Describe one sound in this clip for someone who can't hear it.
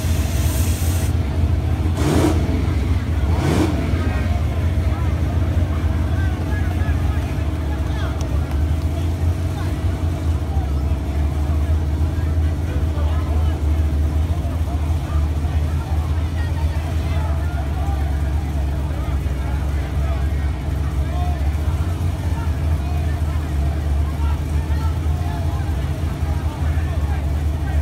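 A crowd chatters in the distance.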